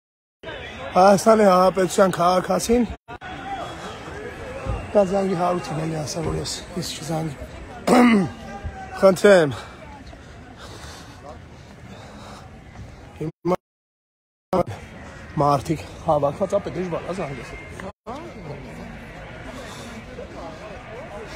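A crowd murmurs on a street.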